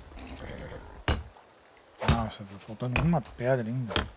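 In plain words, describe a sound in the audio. A pickaxe strikes crystal with sharp ringing hits.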